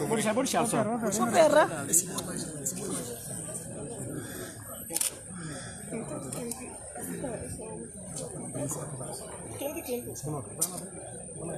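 An elderly woman speaks earnestly into microphones close by.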